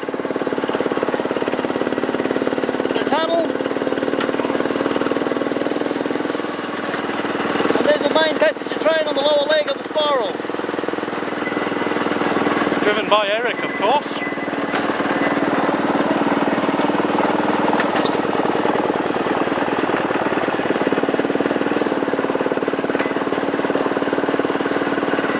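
A small train engine runs with a steady drone close by.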